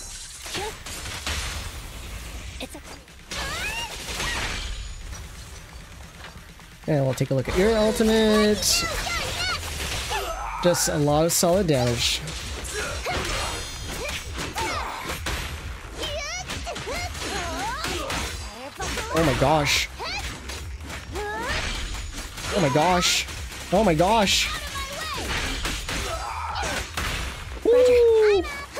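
Sword slashes and heavy blows strike in quick bursts, with sharp impact clashes.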